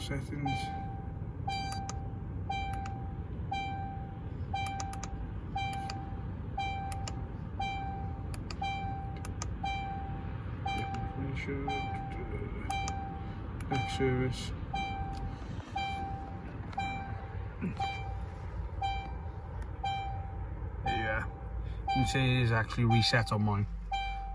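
A car's warning chime beeps over and over at a steady pace.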